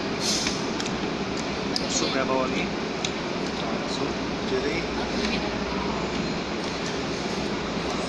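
A metal fork clinks against a plate.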